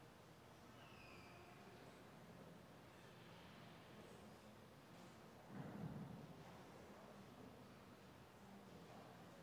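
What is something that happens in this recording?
A crowd of adults murmurs softly in a large echoing hall.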